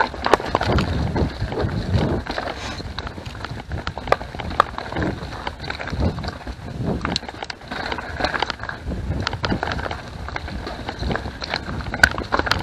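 A bicycle's frame and chain rattle and clank over bumps.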